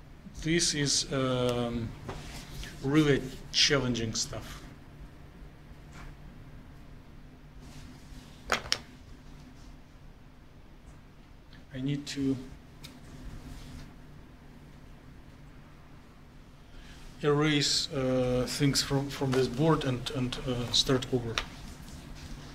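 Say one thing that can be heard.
A man speaks calmly to a room, heard in a reverberant hall.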